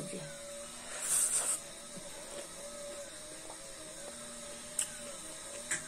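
A young woman chews food and smacks her lips.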